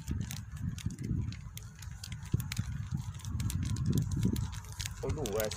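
A plastic bag crinkles and rustles close by.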